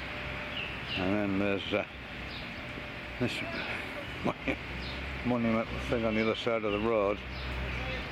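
A man talks nearby in short phrases.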